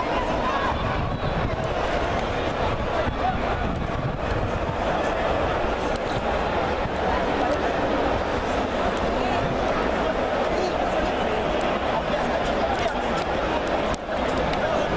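A crowd of men and boys chatter and call out nearby in an open stadium.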